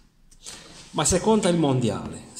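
A middle-aged man speaks with animation close to the microphone.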